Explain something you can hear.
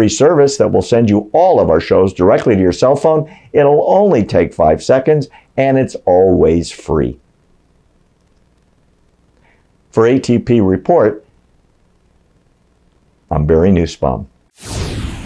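A middle-aged man speaks calmly and steadily into a microphone, close by.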